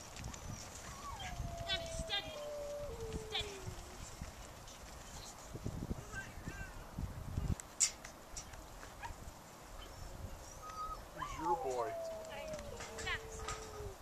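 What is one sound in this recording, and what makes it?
A man whistles long, falling commands to a herding dog.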